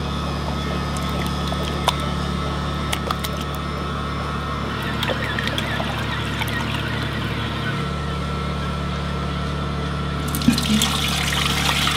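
An electric machine hums steadily.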